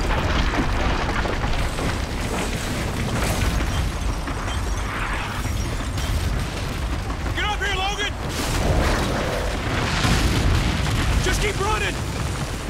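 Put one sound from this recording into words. Masonry collapses and debris crashes down with a deep rumble.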